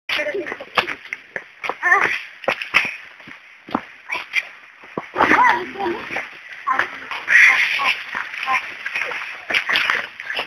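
Footsteps thud and scuff on a dirt path.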